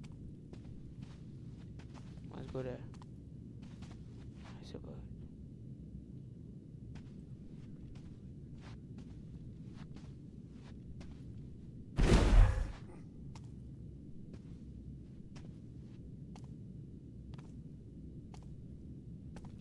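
Soft footsteps tread slowly across a hard floor.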